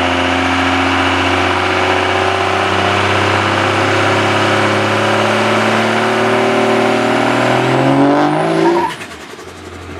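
A truck engine rumbles nearby and then slows.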